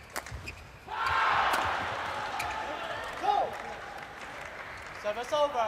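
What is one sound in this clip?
A crowd cheers and applauds in a large hall.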